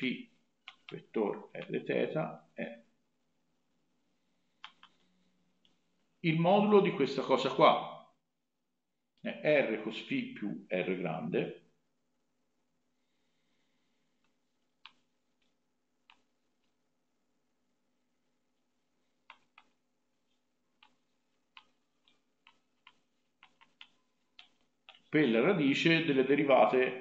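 A young man speaks calmly and explanatorily into a nearby microphone, in short bursts with pauses.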